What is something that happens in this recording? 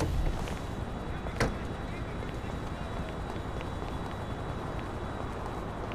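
Footsteps run on pavement and stone steps.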